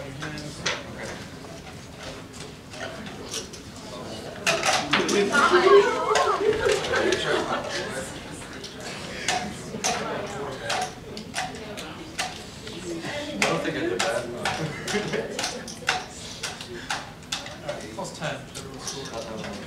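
Young people clap their hands.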